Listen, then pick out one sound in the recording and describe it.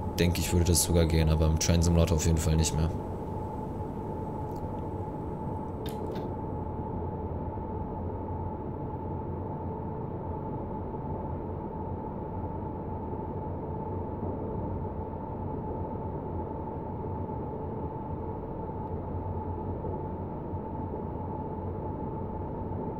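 Wheels rumble over rails.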